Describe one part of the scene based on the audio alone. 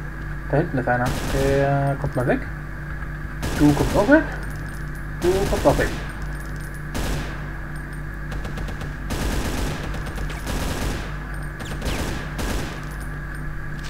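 A rifle fires repeated shots.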